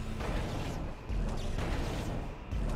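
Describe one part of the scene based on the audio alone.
A weapon fires with a sharp blast.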